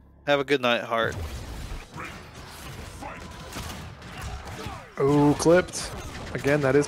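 Game fighters trade blows with sharp impact hits and whooshes.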